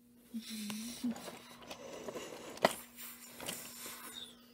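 Plastic toy trains clack as a hand sets them onto a track.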